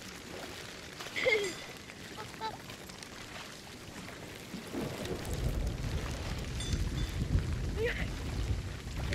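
Heavy rain pours down on rough open water.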